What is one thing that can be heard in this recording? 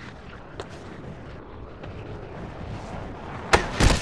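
A skateboard grinds along a metal rail.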